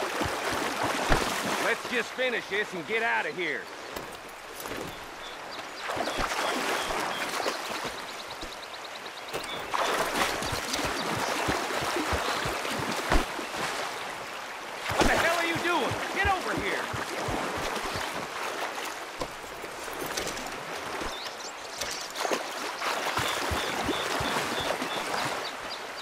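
Water splashes as someone wades steadily through a shallow stream.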